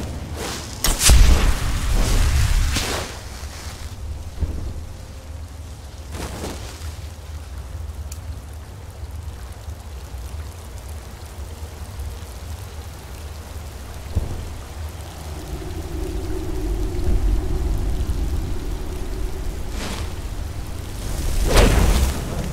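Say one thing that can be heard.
A magic spell bursts with a whooshing crackle.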